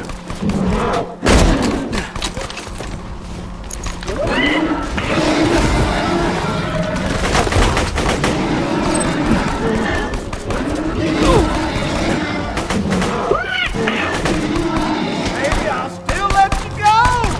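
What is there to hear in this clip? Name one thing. Creatures snarl and roar.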